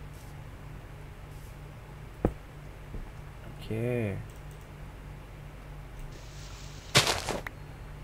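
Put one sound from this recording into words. Dirt crunches as it is dug out in short bursts.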